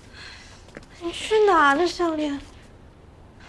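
A young woman speaks nearby with dismay, her pitch rising and falling.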